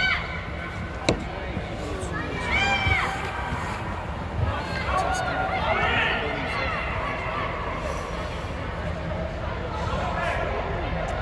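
Children shout across a large echoing indoor hall.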